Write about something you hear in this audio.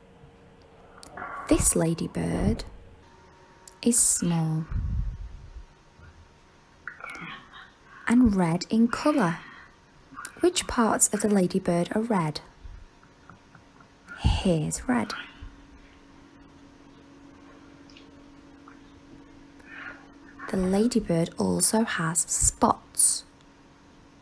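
A woman speaks slowly and clearly, close by, in bursts with pauses.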